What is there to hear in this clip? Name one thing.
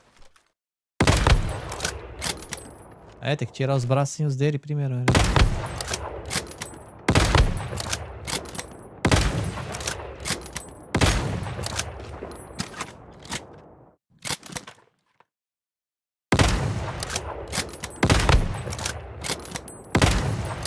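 Rifle shots crack loudly, one every few seconds, each followed by a rumbling echo.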